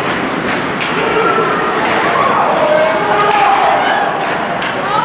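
Ice skates scrape across the ice.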